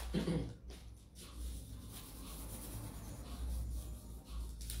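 A hand rubs softly over paper.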